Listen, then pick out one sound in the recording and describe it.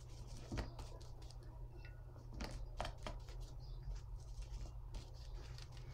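A brush swishes and taps in a paint tray.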